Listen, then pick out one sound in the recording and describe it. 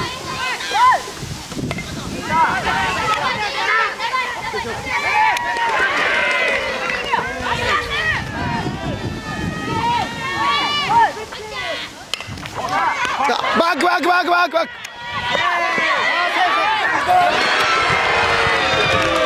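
Young men shout and cheer outdoors.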